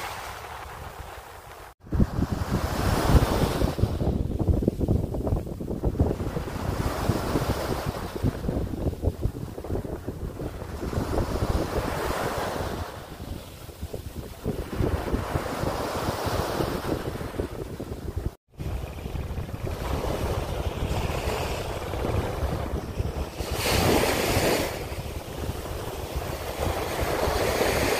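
Small waves break and wash up on a sandy beach in surges.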